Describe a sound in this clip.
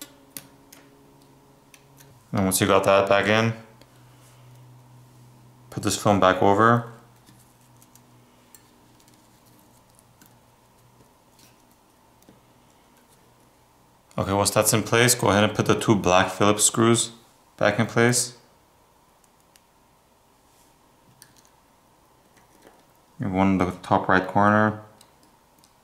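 Small parts of a phone click softly as fingers press and pry at them.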